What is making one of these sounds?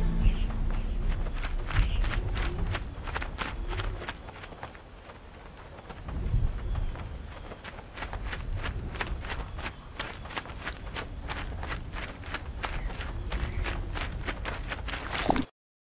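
A bird flaps its wings in quick, repeated beats.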